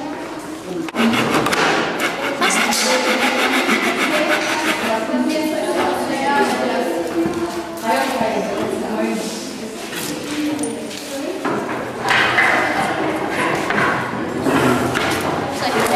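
A hand saw cuts back and forth through a wooden strip in a miter box.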